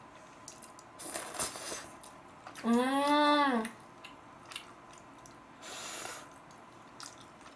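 A young woman slurps and chews noodles close to a microphone.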